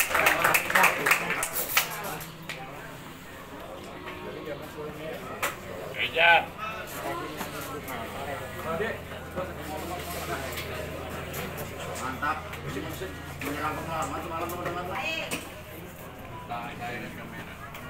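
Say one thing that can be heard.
A seated crowd murmurs and chatters.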